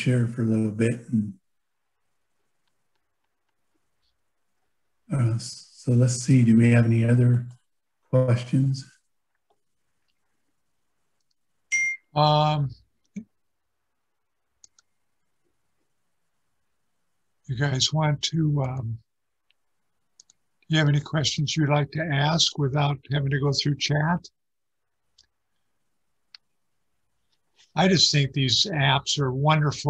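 A middle-aged man speaks calmly into a microphone over an online call, pausing between phrases.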